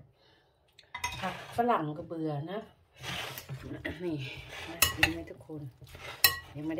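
A spoon scrapes and tosses food in a glass bowl.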